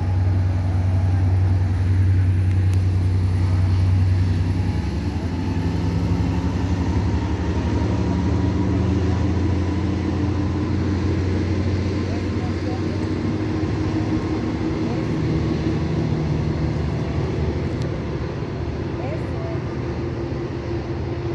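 A train rumbles and hums nearby as it slowly pulls away.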